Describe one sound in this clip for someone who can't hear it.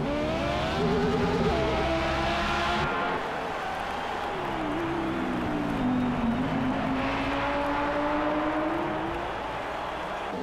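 A racing car engine roars at high revs, its pitch rising and falling through gear changes.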